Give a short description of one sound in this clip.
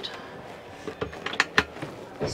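A cabinet flap shuts with sharp knocks.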